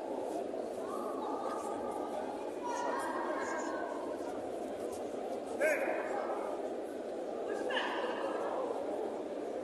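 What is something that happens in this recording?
Spectators shout out loudly now and then.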